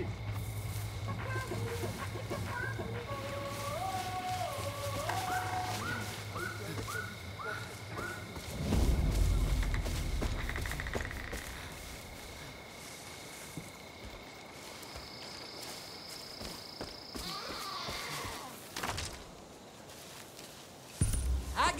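Footsteps rustle through tall grass and flowers.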